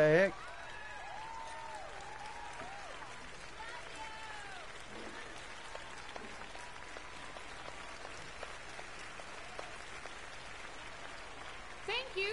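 A small band with piano and double bass plays softly.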